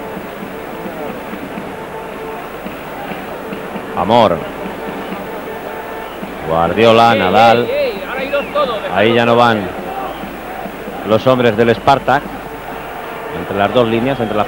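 A large crowd murmurs steadily across an open stadium.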